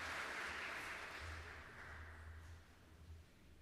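A youth choir holds a final chord that fades away, echoing through a large reverberant hall.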